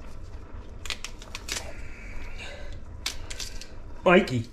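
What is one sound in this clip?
A crisp green pepper snaps and crackles as fingers break it apart.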